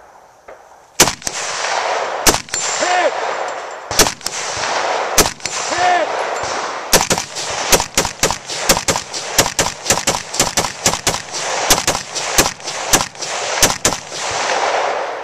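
Gunshots crack loudly outdoors, first spaced apart and then in rapid bursts.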